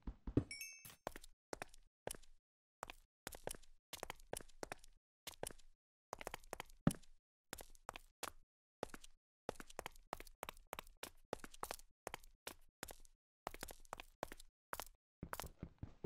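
Footsteps crunch steadily on stone.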